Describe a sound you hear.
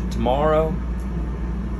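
A man speaks briefly through a phone speaker.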